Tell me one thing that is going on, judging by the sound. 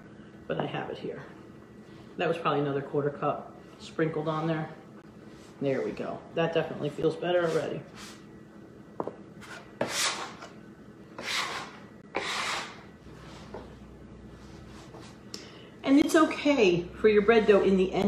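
Hands knead and pat dough on a board.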